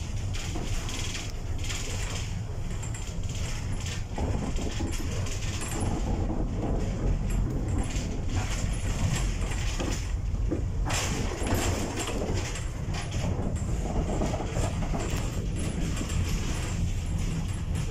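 A vehicle's engine rumbles steadily from inside as it drives along.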